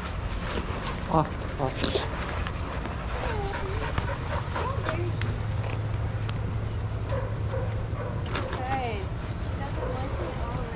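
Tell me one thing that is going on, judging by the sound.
A dog whines in short high cries.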